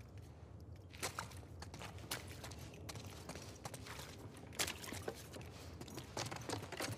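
Footsteps shuffle across a hard floor indoors.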